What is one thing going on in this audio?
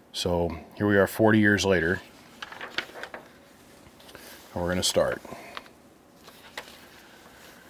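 Paper pages rustle and turn.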